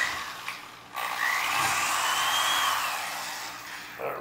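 An electric drill whirs as it bores into metal.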